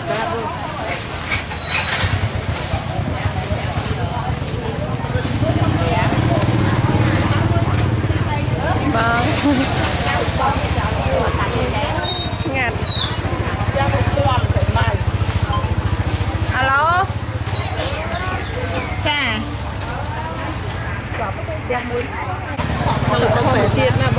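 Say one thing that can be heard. Voices of people chatter around a busy outdoor market.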